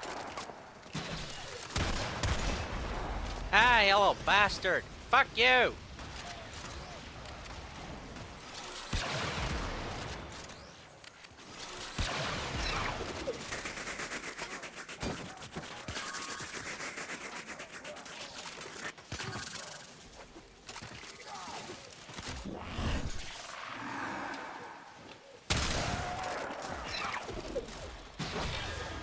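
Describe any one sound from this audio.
Game weapons fire and clash in rapid bursts.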